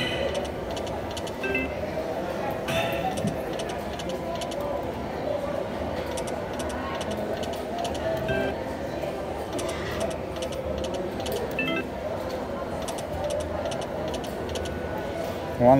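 A slot machine's reels spin with rapid ticking clicks.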